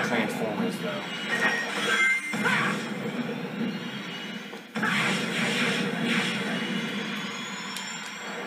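Upbeat video game music plays through a television speaker.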